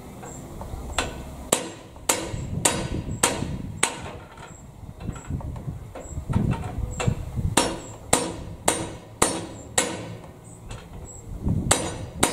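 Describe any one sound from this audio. Metal tools clank and knock sharply against a machine.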